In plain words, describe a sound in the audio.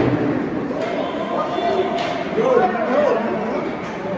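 Young players shout across the echoing rink.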